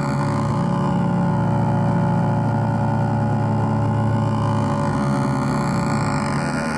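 Electronic music drones loudly through speakers with a steady low hum and pulsing texture.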